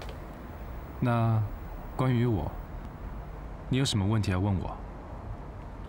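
A young man speaks softly and calmly nearby.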